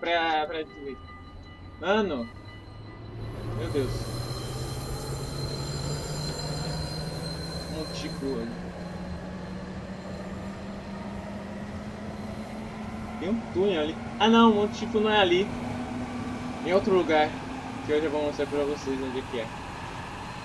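A train's electric motor hums, rising steadily in pitch as the train speeds up.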